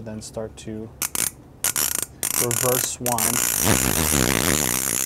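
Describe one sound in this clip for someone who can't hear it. A fishing reel's ratchet clicks and buzzes as its spool is turned by hand.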